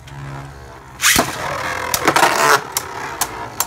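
A second spinning top lands in a plastic dish with a loud scraping rush.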